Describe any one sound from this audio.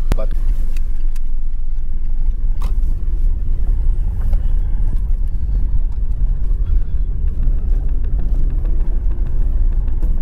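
Tyres roll and bump over a rough road.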